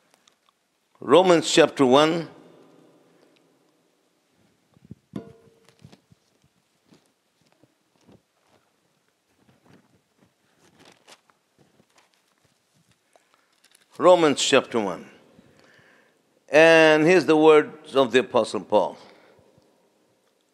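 A man speaks slowly and calmly through a microphone, echoing in a large hall.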